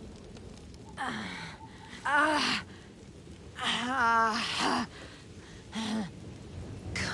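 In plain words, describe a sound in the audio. A man groans and cries out in pain, close by.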